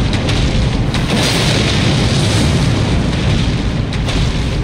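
Flames burst and roar in a fiery explosion.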